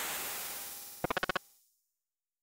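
Quick electronic beeps chirp in a rapid run.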